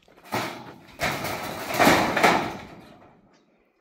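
Corrugated metal sheets rattle and clang as they are dragged.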